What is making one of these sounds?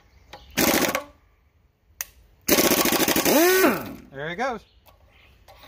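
An impact wrench rattles loudly in short bursts, then winds down.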